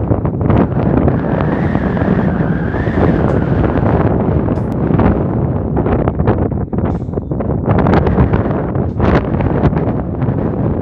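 Strong wind blusters and buffets loudly outdoors.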